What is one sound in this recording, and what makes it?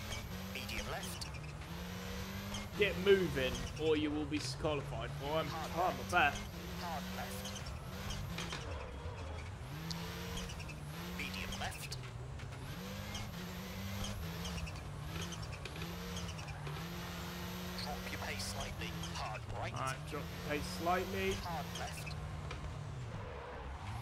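A rally car engine revs and changes pitch as the car speeds along a winding road.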